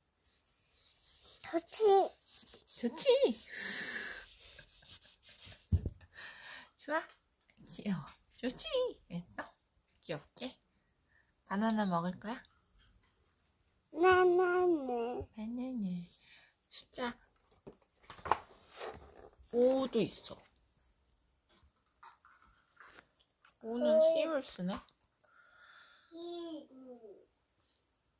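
A young child talks softly close by.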